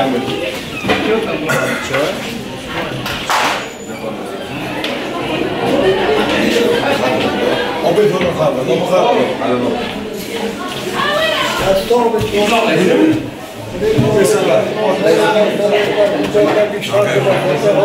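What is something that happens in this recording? An elderly man talks nearby.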